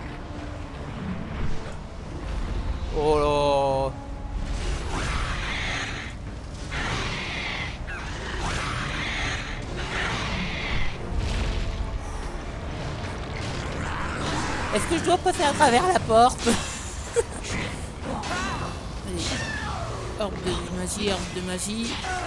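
Wind howls steadily through a sandstorm.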